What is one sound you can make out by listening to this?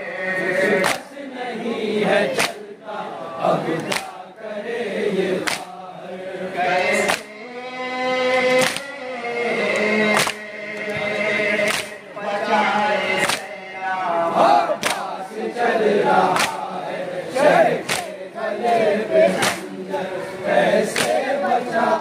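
Men beat their chests in a steady rhythm of heavy slaps.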